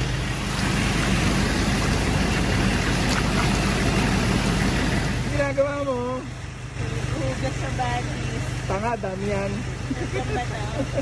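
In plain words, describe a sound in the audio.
Water rushes and splashes over rocks close by.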